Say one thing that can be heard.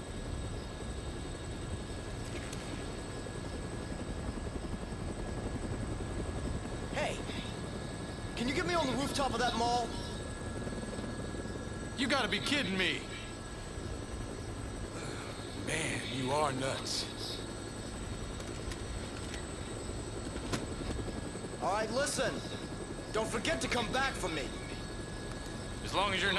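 A helicopter's rotor drones steadily.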